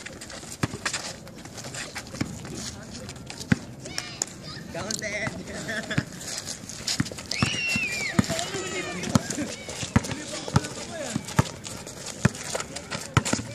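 A basketball bounces repeatedly on an outdoor court.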